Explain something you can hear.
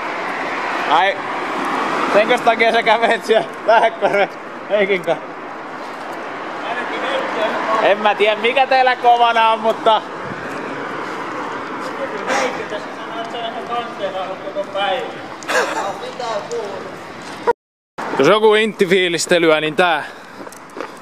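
A young man talks and laughs excitedly close by.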